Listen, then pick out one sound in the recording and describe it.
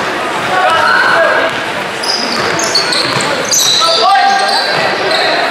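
Spectators murmur and call out nearby.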